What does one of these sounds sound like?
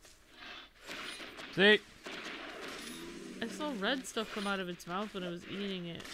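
A large dinosaur grunts and bellows.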